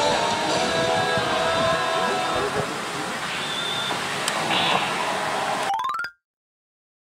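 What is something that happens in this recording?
A slot machine plays loud electronic music.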